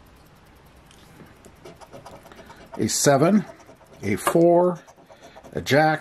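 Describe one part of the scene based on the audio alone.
A coin scratches at a paper card.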